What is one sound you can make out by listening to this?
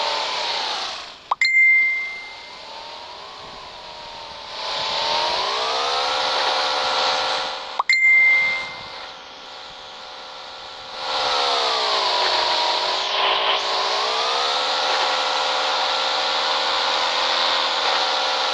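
A motorbike engine hums and revs up and down.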